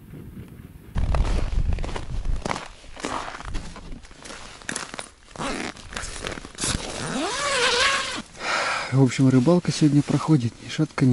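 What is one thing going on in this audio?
Tent fabric rustles and flaps close by.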